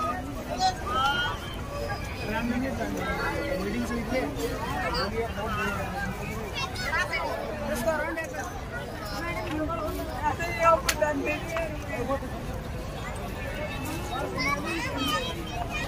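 A large outdoor crowd chatters in many overlapping voices.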